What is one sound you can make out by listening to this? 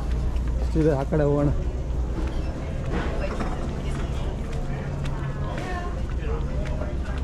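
Shoppers murmur in the distance in a large hall.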